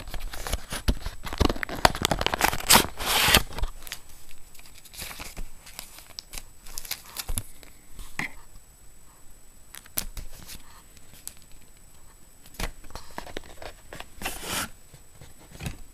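Fabric rustles and things knock together close by as a bag is rummaged through.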